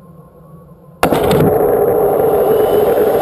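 A rocket motor ignites with a sudden blast.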